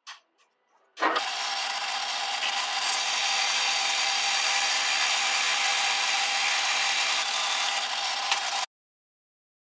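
A drill press bores into wood with a steady whine.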